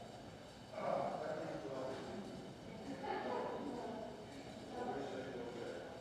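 A man speaks calmly in a large echoing hall.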